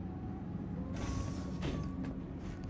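Lift doors slide open.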